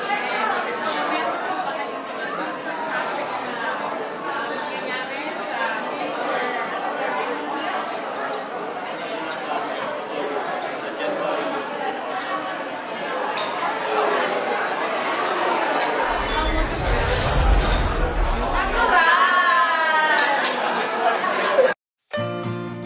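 A middle-aged woman speaks with animation into a microphone.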